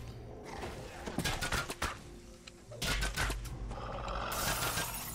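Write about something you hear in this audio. A wolf snarls and growls.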